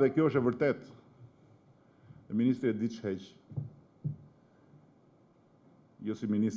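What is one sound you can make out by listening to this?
A middle-aged man speaks firmly into a microphone, with pauses between phrases.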